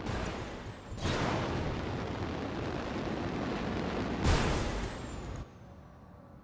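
Jet thrusters roar loudly as a large walking machine leaps through the air.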